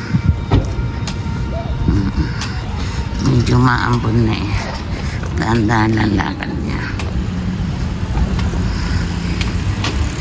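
Footsteps scuff along a paved sidewalk outdoors.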